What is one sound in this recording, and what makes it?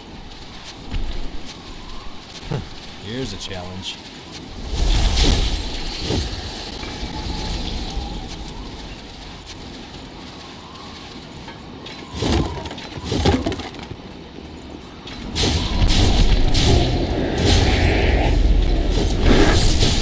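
Sword blows slash and strike in a fight.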